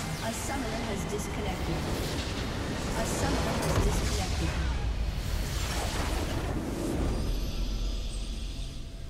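Loud game explosions and blasts crash and rumble.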